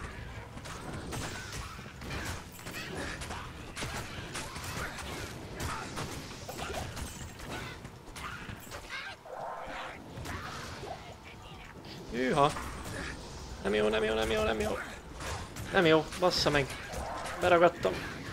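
Weapons clash and hit in a game battle.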